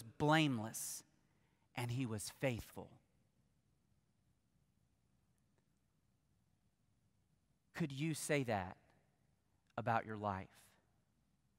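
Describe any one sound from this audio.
A man speaks with emphasis through a microphone, in short phrases with long pauses.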